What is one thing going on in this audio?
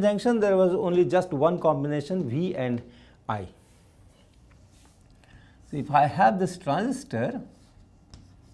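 An elderly man speaks calmly, as if lecturing.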